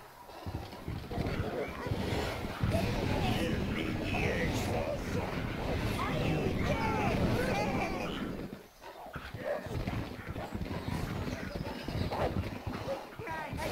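Small creatures shriek and chatter in a crowd.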